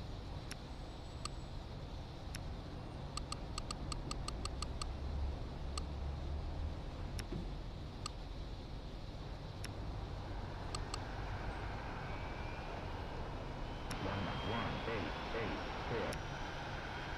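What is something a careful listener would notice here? Short soft clicks sound as game buttons are tapped.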